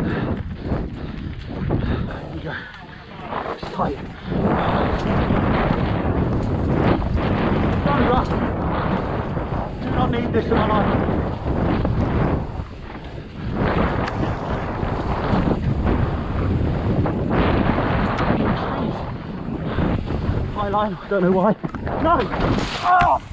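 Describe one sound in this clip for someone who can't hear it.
Bicycle tyres crunch and skid over a dry dirt trail.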